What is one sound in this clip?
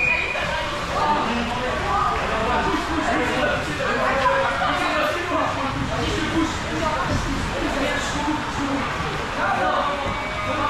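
Water rushes and splashes steadily in a pool.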